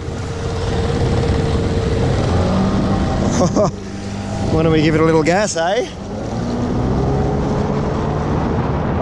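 Water splashes and swishes against the hull of a moving kayak.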